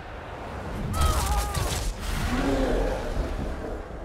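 Heavy blows land with loud thumping impacts.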